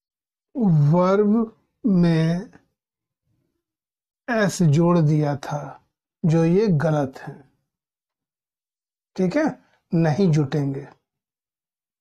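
A man speaks clearly in short phrases, close by.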